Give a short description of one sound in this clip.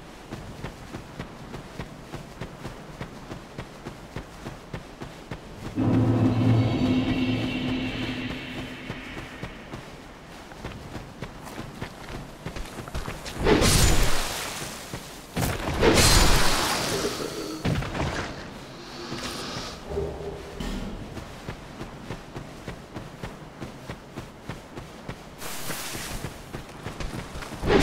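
Footsteps run quickly over dry leaves.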